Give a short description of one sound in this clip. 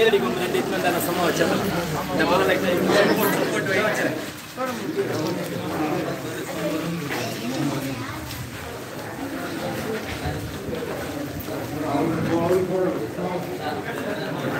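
A crowd of men and women chatter loudly in an echoing hall.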